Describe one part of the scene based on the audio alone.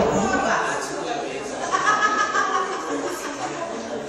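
Several women chat nearby in a large echoing room.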